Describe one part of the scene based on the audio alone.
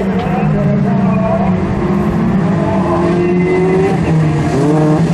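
Tyres skid and spray gravel on a dirt track.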